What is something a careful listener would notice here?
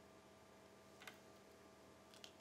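A stone clicks sharply onto a wooden board.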